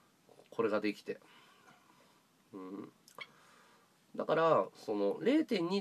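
A man talks close up in short bursts, with pauses.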